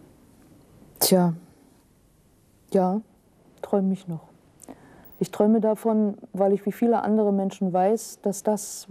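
A middle-aged woman speaks calmly and thoughtfully, close to a microphone.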